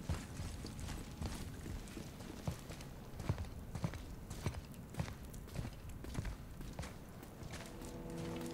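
Heavy footsteps crunch on gravel and stone.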